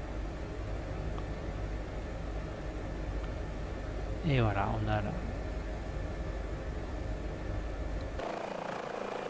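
A helicopter engine hums steadily inside the cabin.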